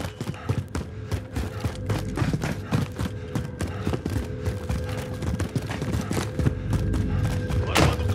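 Footsteps tap up concrete stairs.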